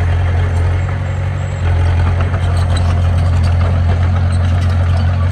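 A bulldozer engine rumbles steadily nearby.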